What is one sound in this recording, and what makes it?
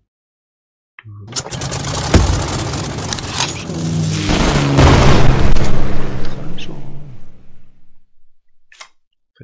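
A deep whooshing rumble swells and fades as a card is played in a game.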